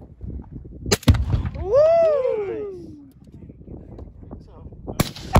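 A rifle fires loud, sharp shots outdoors.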